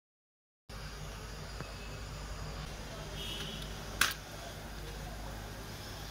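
Fish steaks are set down on a plastic tray.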